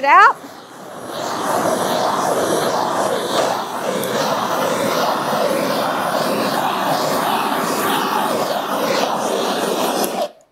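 A blowtorch roars steadily.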